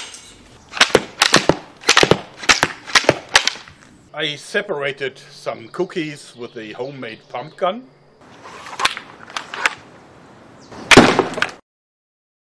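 A launcher fires with a series of sharp snaps outdoors.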